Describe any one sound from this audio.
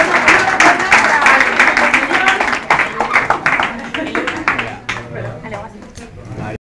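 Men and women chatter in a crowd nearby.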